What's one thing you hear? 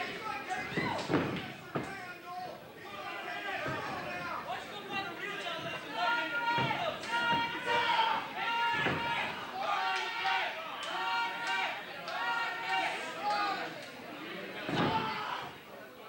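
Wrestlers' bodies and feet thud heavily on a ring mat.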